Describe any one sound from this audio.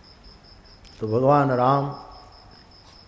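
An elderly man speaks briefly into a microphone with a drawn-out voice.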